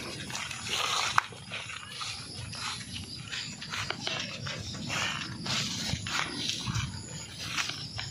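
Footsteps rustle through leafy plants.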